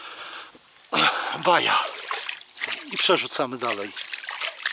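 A fish splashes in shallow water as it is released.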